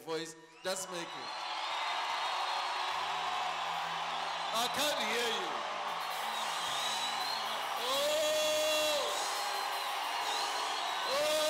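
A large crowd sings and shouts loudly in an echoing hall.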